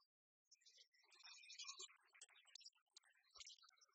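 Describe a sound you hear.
A die rattles onto a tray.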